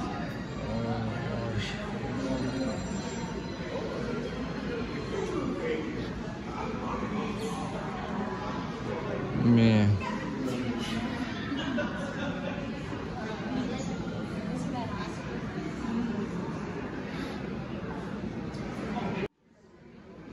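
Men and women chatter nearby in a room with an echo.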